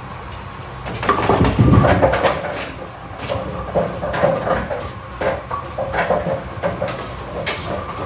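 Bowling pins clatter as the machine sweeps and resets them.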